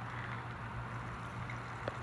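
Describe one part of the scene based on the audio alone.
Thick sauce pours and splatters onto seafood.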